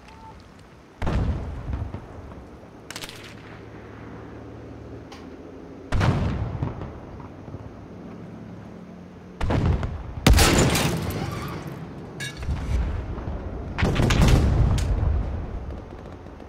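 Loud rifle shots crack and boom, with long rolling echoes.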